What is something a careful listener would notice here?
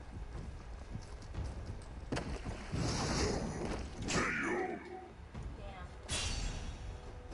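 Swords clash with sharp metallic rings.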